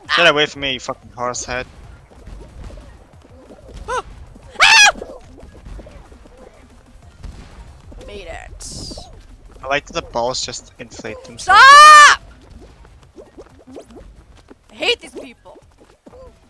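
Playful cartoon sound effects chirp and boing in short bursts.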